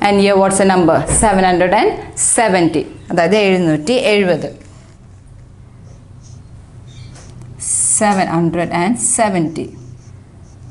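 A young woman speaks calmly, as if teaching, close to the microphone.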